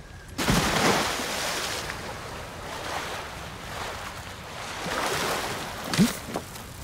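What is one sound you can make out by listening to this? Water sloshes as someone swims.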